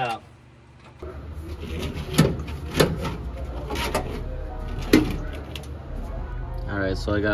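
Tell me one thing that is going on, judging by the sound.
A metal tool scrapes against sheet metal.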